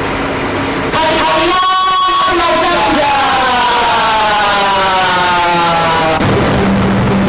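A young woman cries out loudly with long, wailing calls.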